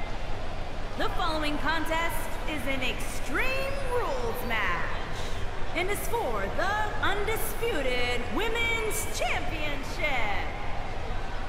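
A woman speaks with animation through a microphone in a large echoing arena.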